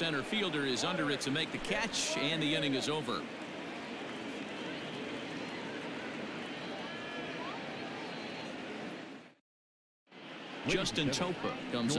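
A large crowd murmurs steadily in a big stadium.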